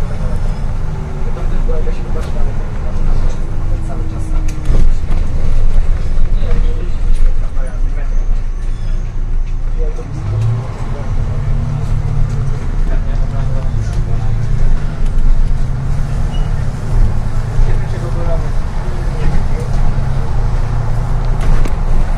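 Rattles and creaks sound inside the bus as it drives.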